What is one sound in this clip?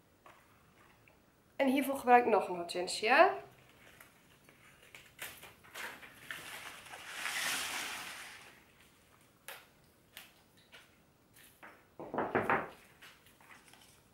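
Leaves and stems rustle as they are handled.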